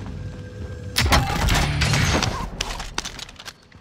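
A gun's metal parts clatter as it is picked up.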